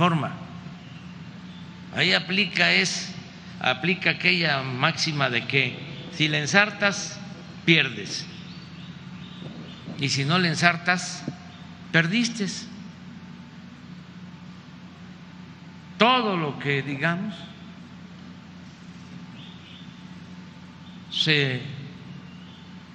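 An elderly man speaks calmly into a microphone, heard through a loudspeaker, with long pauses.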